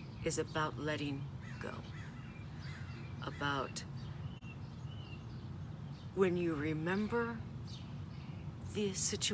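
A middle-aged woman speaks calmly and expressively close by.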